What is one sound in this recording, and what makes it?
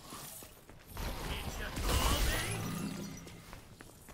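A large creature swoops past with a loud rushing whoosh.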